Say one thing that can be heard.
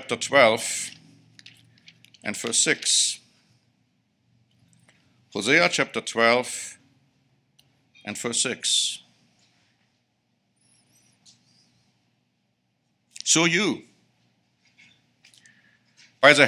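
A middle-aged man speaks slowly and calmly into a microphone, pausing between phrases.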